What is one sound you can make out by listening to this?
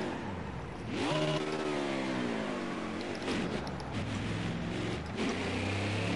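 A V8 stock car engine revs up as the car accelerates.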